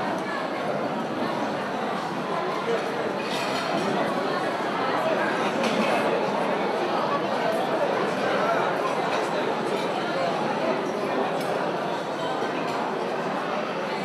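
Cutlery and dishes clink now and then.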